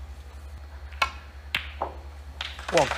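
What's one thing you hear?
Snooker balls click sharply together.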